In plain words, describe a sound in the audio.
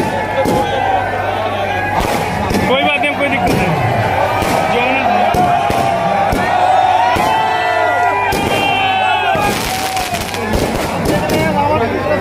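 Firecrackers burst and crackle loudly, again and again.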